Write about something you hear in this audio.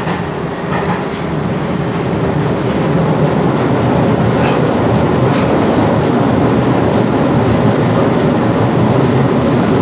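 Wheels clatter and squeal faintly on the rails.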